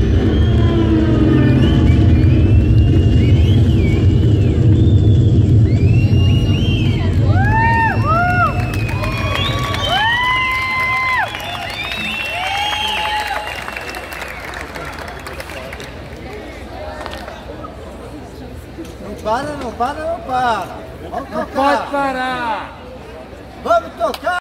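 Loud electronic music plays through large speakers.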